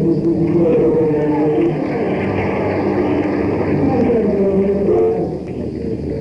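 A rock band plays loudly with electric guitars.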